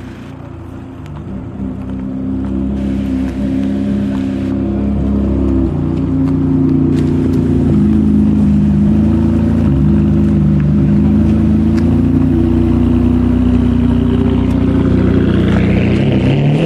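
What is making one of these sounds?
A sports car engine idles with a deep rumble, growing louder as the car approaches.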